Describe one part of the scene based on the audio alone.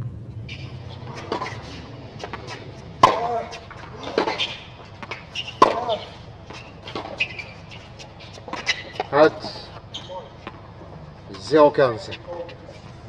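Tennis balls are struck with sharp pops, back and forth.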